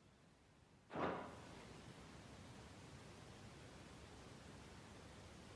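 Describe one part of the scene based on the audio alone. Soft wind blows through a misty forest.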